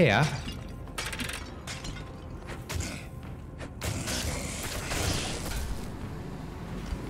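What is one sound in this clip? Game sound effects of fighting clash and crackle.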